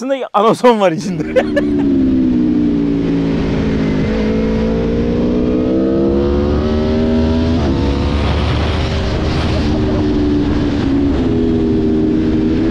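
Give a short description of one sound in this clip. Wind rushes past a moving motorcycle.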